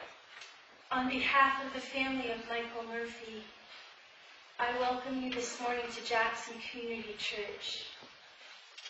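A woman speaks calmly into a microphone, heard over a loudspeaker in an echoing room.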